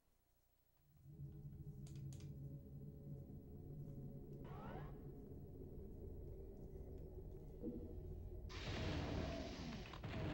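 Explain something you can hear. Low game music hums steadily.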